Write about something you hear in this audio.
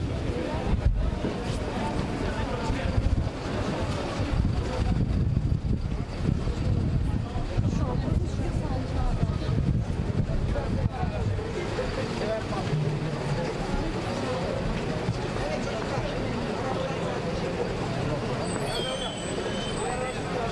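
A crowd murmurs and chatters outdoors on a busy street.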